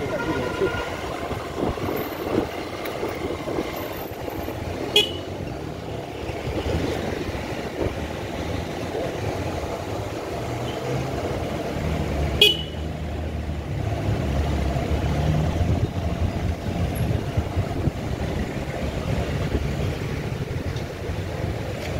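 A vehicle engine rumbles steadily close by while driving slowly.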